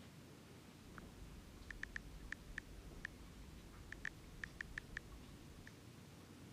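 Fingers tap quickly on a phone's keypad, with soft clicks.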